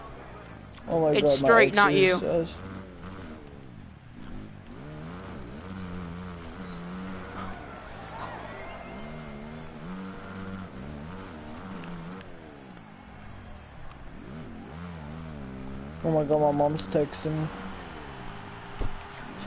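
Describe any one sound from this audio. A motorbike engine revs and whines, rising and falling in pitch.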